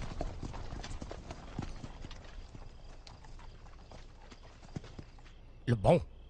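Armour and weapons clink as soldiers march.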